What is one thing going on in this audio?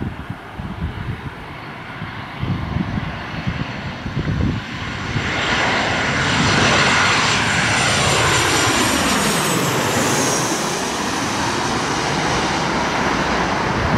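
A jet airliner roars loudly as it passes low overhead, its engines whining and then fading away.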